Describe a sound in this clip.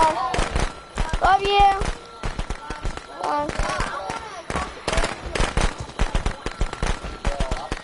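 Heavy footsteps crunch on dirt and gravel.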